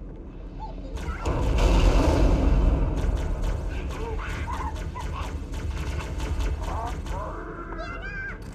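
A plasma weapon fires in rapid bursts with a fizzing crackle.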